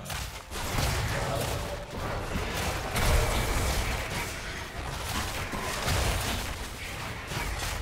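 Sword strikes clash repeatedly.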